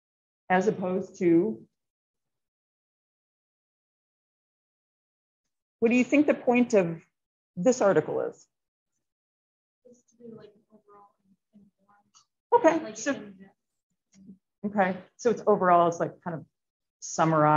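A woman talks calmly into a microphone in short bursts.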